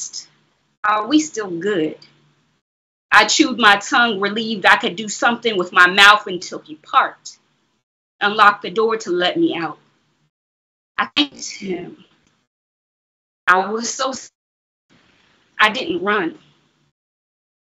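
A woman reads aloud with expression, close to a microphone over an online call.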